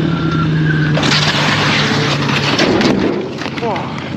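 A motorcycle crashes and scrapes loudly along the road.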